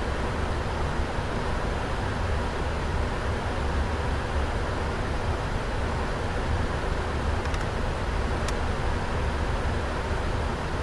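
Jet engines roar with a steady, low rumbling hum.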